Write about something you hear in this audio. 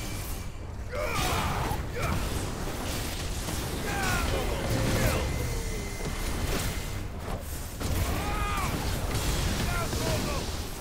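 Fiery blasts and explosions boom in quick succession.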